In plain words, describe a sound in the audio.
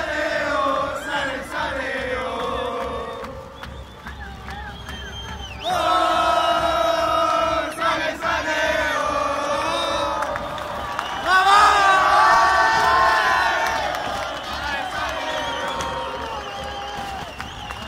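A large crowd of fans sings and chants loudly in an open stadium.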